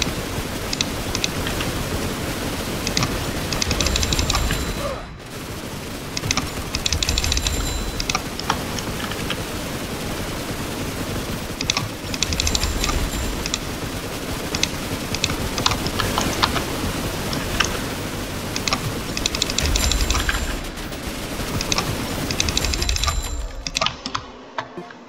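Many guns fire in rapid, crackling bursts.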